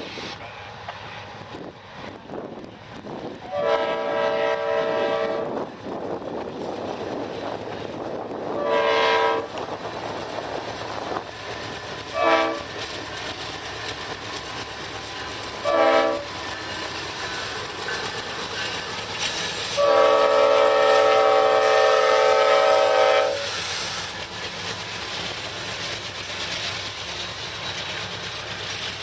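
A diesel locomotive engine rumbles as it passes close by.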